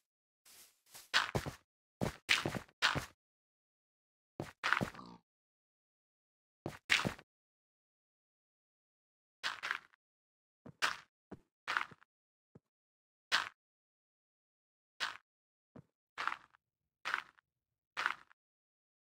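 Dirt blocks are placed one after another with short, soft crunching thuds.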